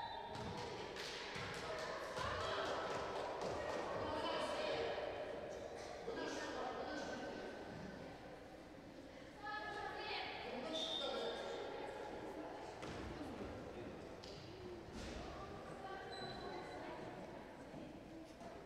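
Young women players call out to each other across the court.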